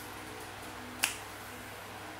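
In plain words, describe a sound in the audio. A finger taps on a glass touchscreen.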